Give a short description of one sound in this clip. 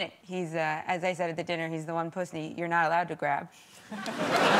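A young woman speaks through a microphone in a lively tone.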